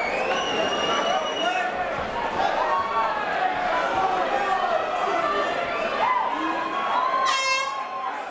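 A man referee speaks loudly to the fighters.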